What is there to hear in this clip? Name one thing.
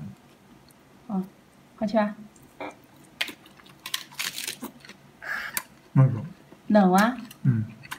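A man crunches on crisp lettuce while chewing.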